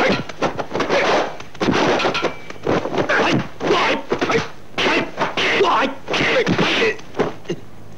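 Men shout and grunt loudly as they fight.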